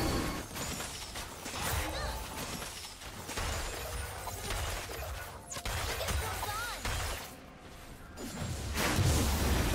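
Fighting sound effects from a video game whoosh and clash.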